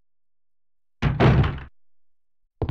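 A heavy wooden door thuds shut.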